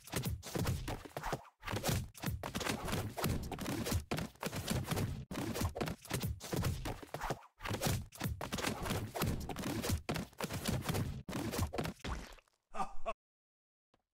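Heavy blows thud and crash in rapid succession.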